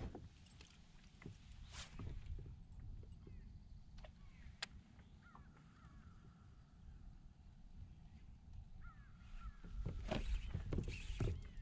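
Wind blows across the microphone outdoors, with gusts.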